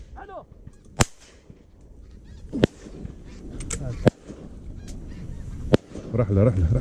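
A semi-automatic shotgun fires sharp blasts outdoors.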